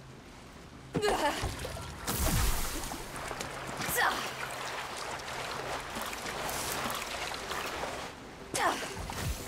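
Water splashes and sloshes underfoot.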